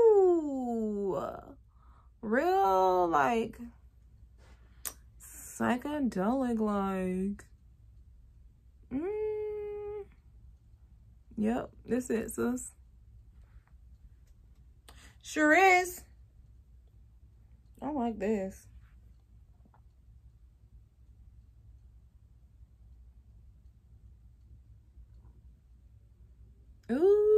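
A young woman talks calmly and close by, in short phrases with pauses.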